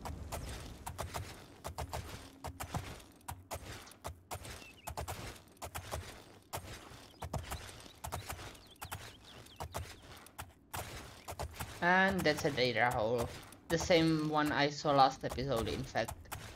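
Horse hooves clop steadily on stone and grass.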